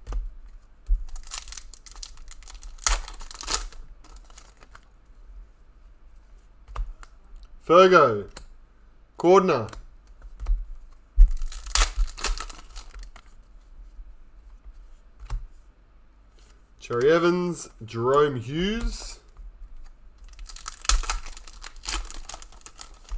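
Foil trading card packs crinkle and tear as hands open them.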